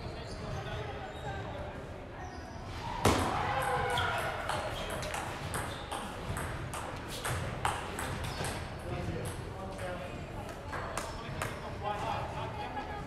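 A table tennis ball clicks back and forth on paddles and the table, echoing in a large hall.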